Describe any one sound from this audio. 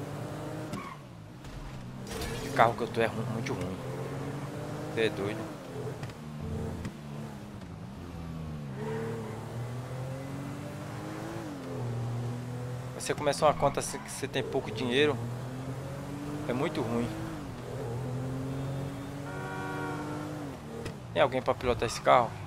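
A car engine hums steadily and rises and falls in pitch as the car speeds up and slows down.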